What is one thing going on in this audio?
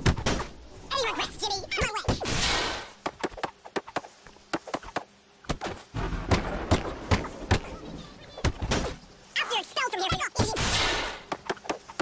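A young man grunts and shouts while fighting.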